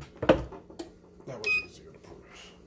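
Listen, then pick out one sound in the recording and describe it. A metal press handle clanks as it is moved.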